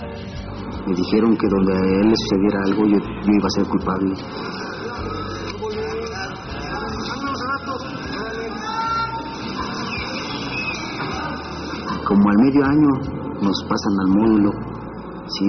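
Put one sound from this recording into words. A young man speaks calmly, close by.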